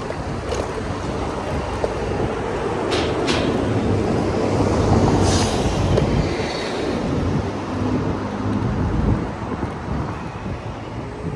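Wind rushes past steadily, as if moving quickly outdoors.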